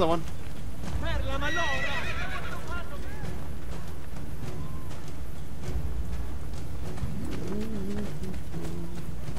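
Footsteps patter quickly on dirt and stone.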